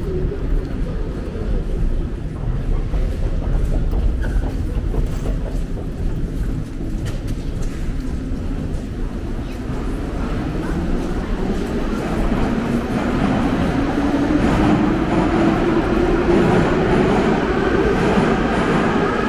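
A crowd murmurs in the echoing hall.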